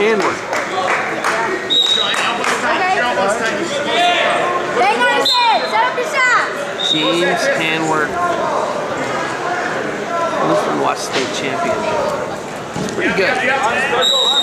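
A crowd of spectators shouts and cheers in a large echoing hall.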